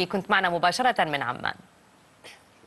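A young woman speaks clearly and calmly into a close microphone.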